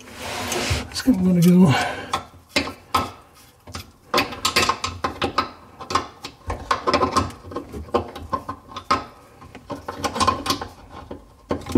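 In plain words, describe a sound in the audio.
A wrench clicks and scrapes against a metal pipe fitting.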